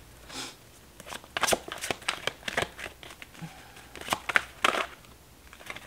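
Playing cards riffle and flap as they are shuffled by hand.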